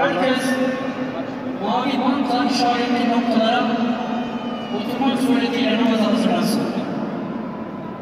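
A man chants a long, drawn-out melody through a loudspeaker, echoing in a large hall.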